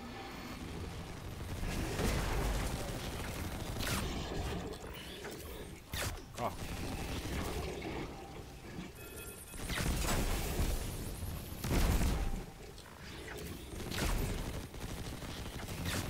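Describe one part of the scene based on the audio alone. Gunfire rattles and booms in quick bursts.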